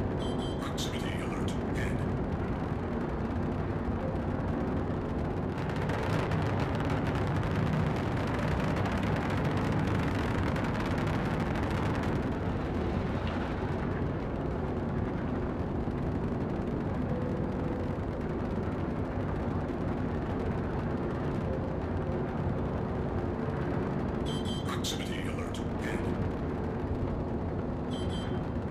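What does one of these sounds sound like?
A spacecraft's engines hum and roar as it flies low over the ground.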